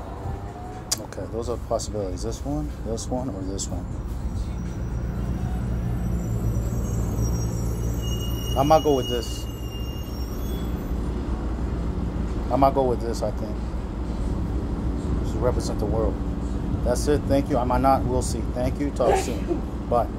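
A middle-aged man talks into a webcam microphone.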